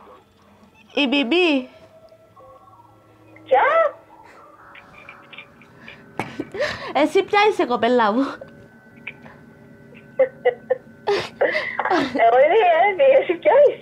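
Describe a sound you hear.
A woman talks animatedly on a phone, close by.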